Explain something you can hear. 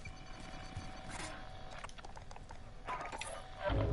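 Soft menu clicks and beeps sound.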